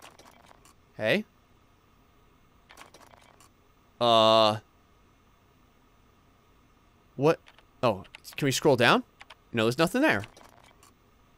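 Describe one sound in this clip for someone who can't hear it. A computer terminal beeps with short electronic chirps.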